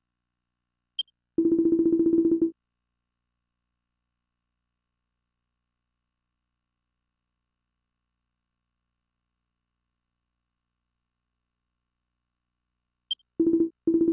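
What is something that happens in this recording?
A short electronic chime rings.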